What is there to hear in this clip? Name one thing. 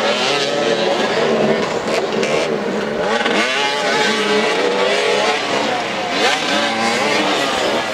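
Motorcycle engines rev and whine in a chorus, rising and falling in pitch.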